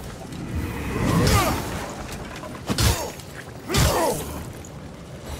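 Blades clash and strike in short, sharp hits.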